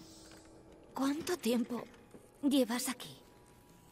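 A young woman asks something in a weak voice.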